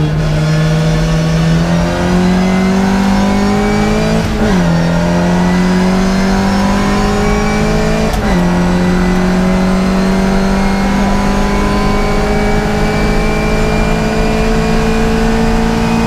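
A classic Mini race car's four-cylinder engine accelerates hard through the gears, heard from inside the cabin.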